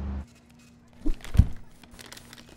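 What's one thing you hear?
A paper bag thumps down onto a table.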